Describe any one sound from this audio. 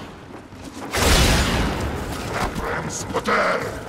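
A loud energy blast bursts with a deep whoosh.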